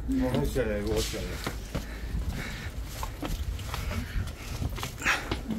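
Footsteps tap on paving at a walking pace.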